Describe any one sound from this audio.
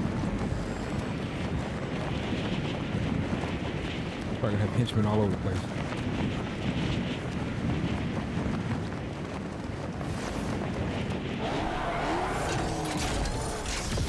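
Air rushes steadily past a character gliding down through the sky.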